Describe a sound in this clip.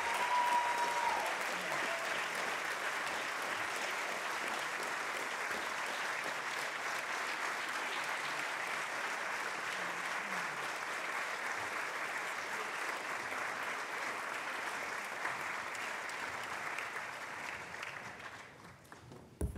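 A large crowd applauds and cheers in a big echoing hall.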